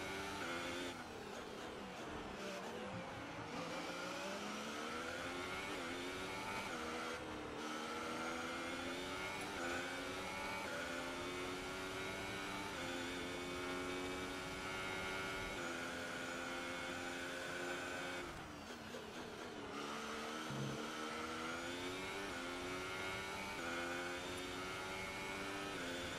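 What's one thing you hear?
A racing car engine screams at high revs, rising in pitch through each gear and dropping briefly at each shift.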